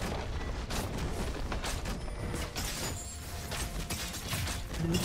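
Magic blasts and hits crackle and whoosh in a fast skirmish.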